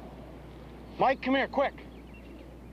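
A man shouts out loudly outdoors.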